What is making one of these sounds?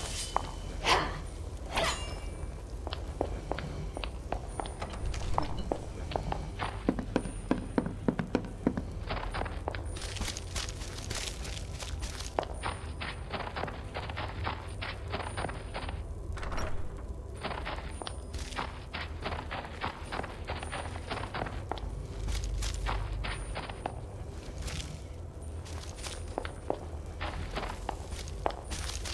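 Footsteps tread steadily on wood and stone.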